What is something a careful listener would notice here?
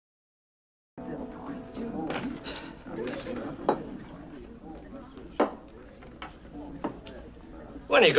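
Glasses clink on a table.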